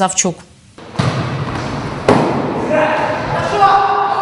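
Players' feet and a ball thud in a large echoing hall.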